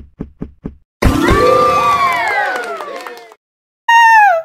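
A cheerful game jingle plays loudly.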